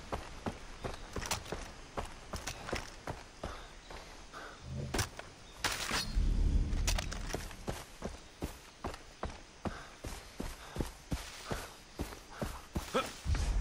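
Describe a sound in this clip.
Footsteps crunch steadily over dirt and grass.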